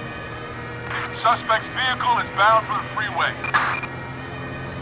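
A police siren yelps in short bursts.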